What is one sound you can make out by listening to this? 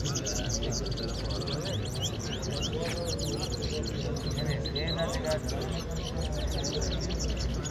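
Many caged songbirds chirp and twitter busily.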